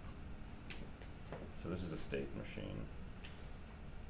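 Paper rustles under a hand.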